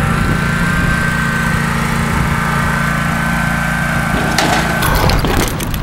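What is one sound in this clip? A ride-on mower engine hums steadily close by.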